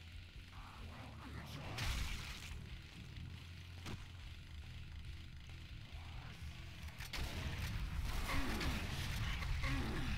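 A chainsaw idles with a low rumble.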